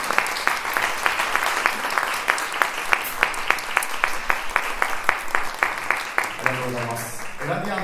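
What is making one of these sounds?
A big band plays a lively jazz tune in a hall.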